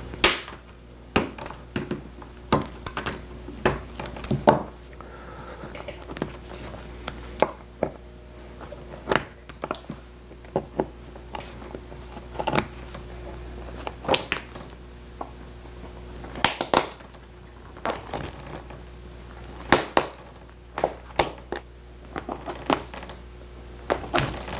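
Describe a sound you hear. A metal tool pries staples out of wood with sharp clicks and snaps.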